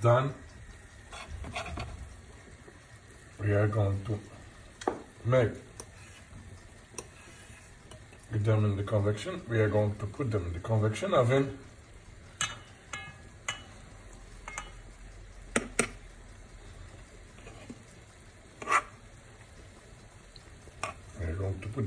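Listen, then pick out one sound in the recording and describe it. A fork scrapes and taps against a frying pan.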